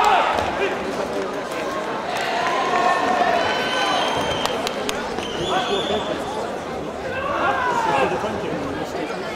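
A man calls out loudly, giving short commands.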